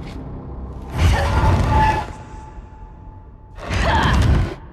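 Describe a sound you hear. A heavy gate grinds and rattles loudly.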